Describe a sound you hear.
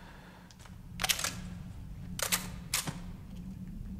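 A gun clatters and clicks as weapons are swapped.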